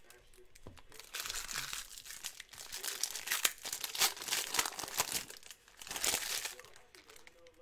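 Foil wrappers crinkle and tear as they are ripped open.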